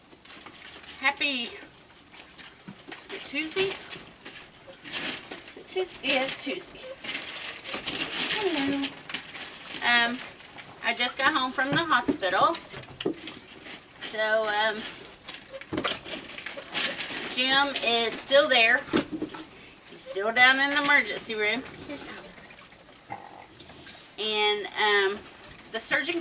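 A middle-aged woman talks calmly and warmly, close by.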